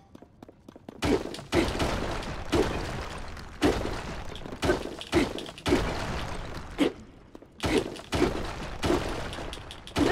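Heavy blows strike rock again and again, each ringing briefly.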